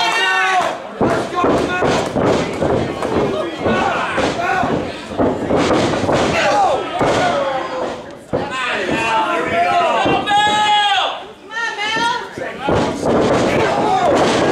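Bodies thud on a wrestling ring's mat.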